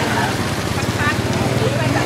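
A bicycle splashes through shallow floodwater.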